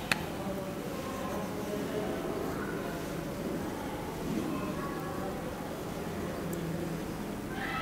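A marker scratches on a whiteboard.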